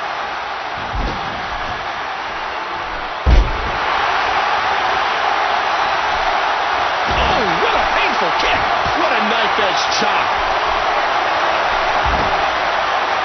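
Bodies slam heavily onto a ring mat with loud thuds.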